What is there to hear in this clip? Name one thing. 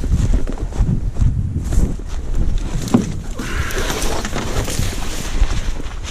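A plastic kayak scrapes and thumps over dry grass.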